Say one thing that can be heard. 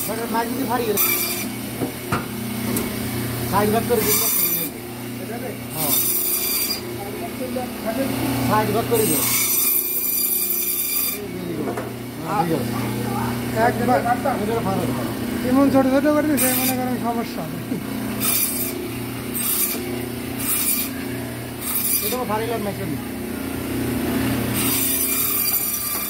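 A band saw blade screeches in bursts as it cuts through frozen fish.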